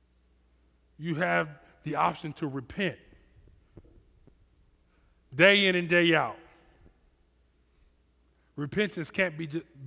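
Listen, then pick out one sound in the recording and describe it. A man speaks with animation into a headset microphone, in short bursts with pauses.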